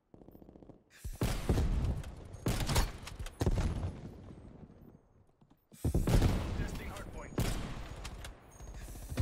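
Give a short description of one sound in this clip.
A rifle fires loud single shots with a booming echo.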